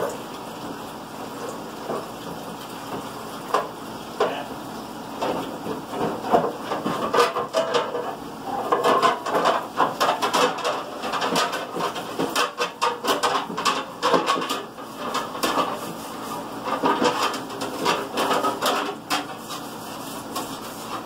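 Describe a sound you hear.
Dishes clatter and clink in a sink.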